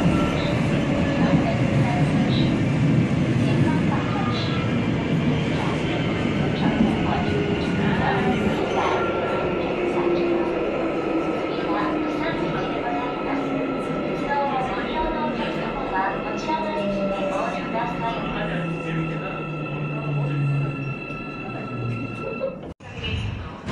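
A subway train rumbles along the track, heard from inside the car.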